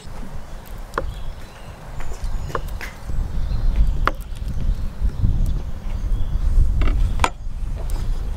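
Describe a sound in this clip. A knife chops on a wooden board.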